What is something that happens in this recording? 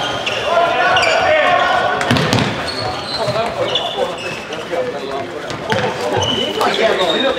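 Shoes squeak sharply on a hard floor in an echoing hall.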